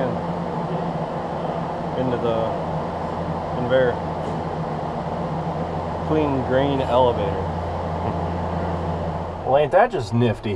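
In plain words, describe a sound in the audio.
An engine hums steadily.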